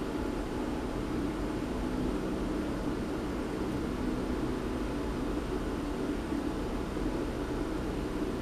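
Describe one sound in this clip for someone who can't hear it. A cloth rustles as a hand handles it close by.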